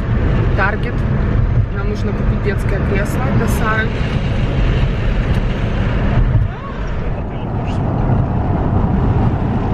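A car engine and tyres rumble steadily on the road.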